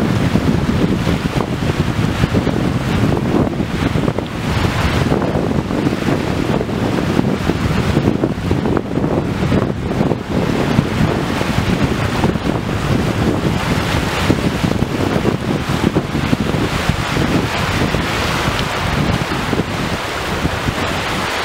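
Small waves wash onto a shore.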